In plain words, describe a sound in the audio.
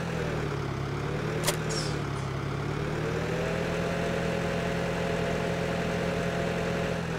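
A tractor engine hums steadily, its pitch rising and falling with speed.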